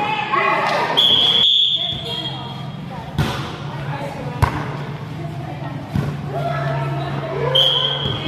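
Young women call out loudly to each other under an echoing roof.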